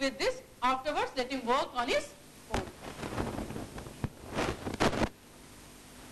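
A woman speaks with animation into a nearby microphone.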